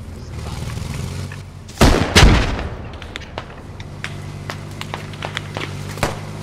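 Footsteps crunch through dry grass.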